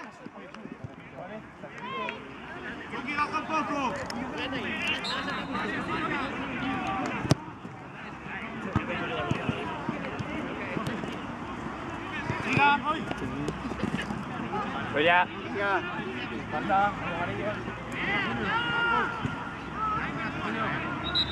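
Men shout and call out across an outdoor pitch.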